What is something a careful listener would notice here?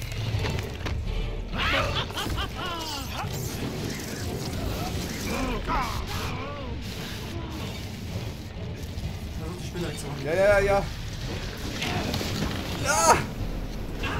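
Two young men talk and exclaim excitedly, heard through a microphone.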